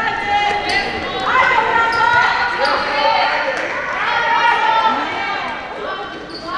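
Young women shout and call to each other in a large echoing hall.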